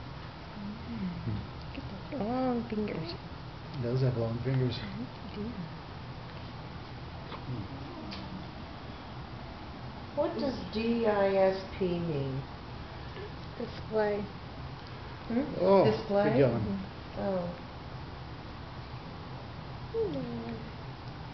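A woman speaks softly and tenderly close by.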